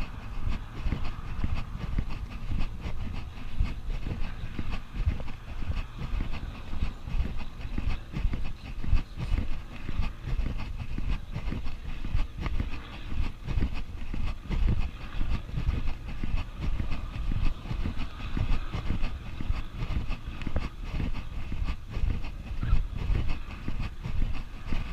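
Wind buffets a microphone outdoors with low, gusty rumbling.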